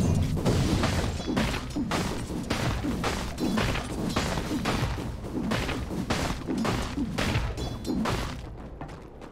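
Magic spells crackle and thump in a fast fantasy battle.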